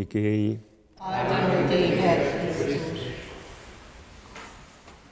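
A congregation of men and women responds together in unison, echoing through the hall.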